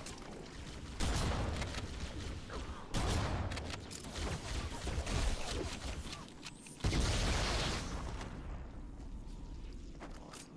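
Loud bursts of gunfire and explosions boom and crackle.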